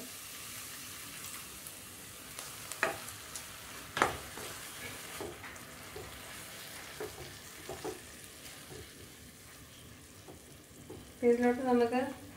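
A metal spoon scrapes and knocks against a pan as food is stirred.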